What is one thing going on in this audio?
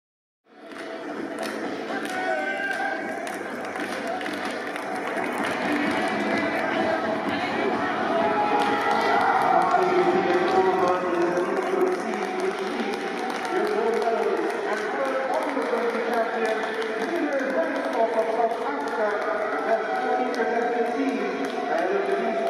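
A small crowd cheers and claps in a large open stadium.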